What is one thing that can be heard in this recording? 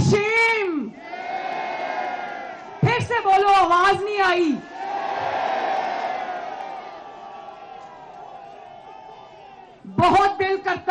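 A crowd cheers and chants loudly.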